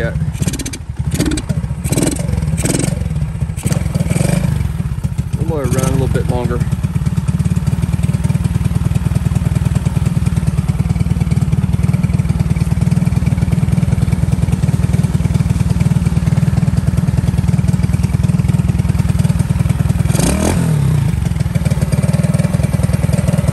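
A motorcycle engine idles with a steady low rumble close by.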